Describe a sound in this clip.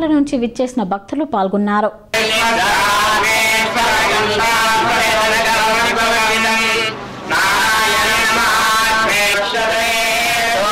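A man chants melodically into a microphone, heard through a loudspeaker.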